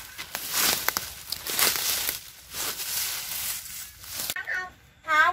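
Dry leaves rustle and crackle as a man rummages through them.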